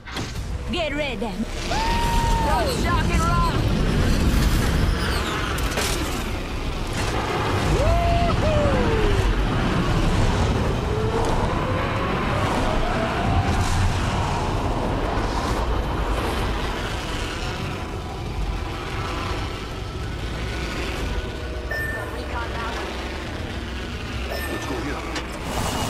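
Wind rushes loudly past during a fast fall through the air.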